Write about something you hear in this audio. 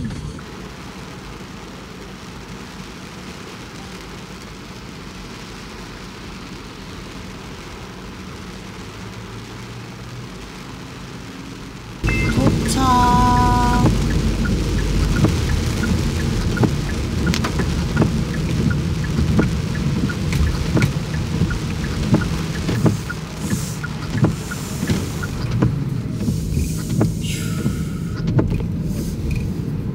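A car engine hums while driving.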